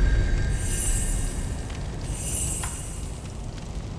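A bright magical chime shimmers as an item is picked up.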